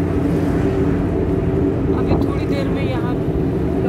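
Passing cars whoosh by.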